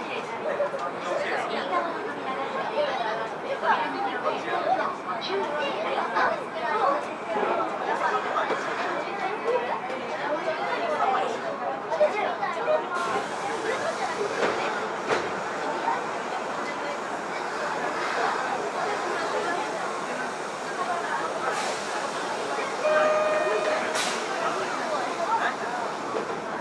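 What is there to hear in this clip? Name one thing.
A subway train hums steadily while standing at a platform.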